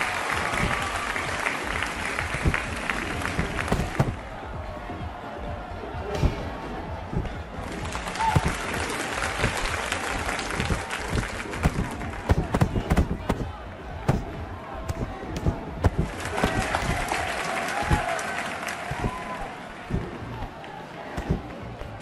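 Boxing gloves thud against bodies in quick punches.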